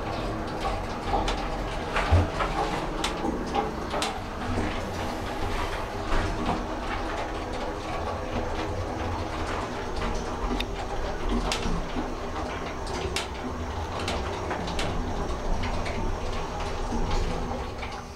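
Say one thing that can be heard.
An elevator motor hums steadily as the car travels.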